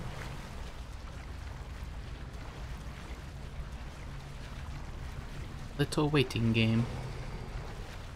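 Wind blows softly across open water.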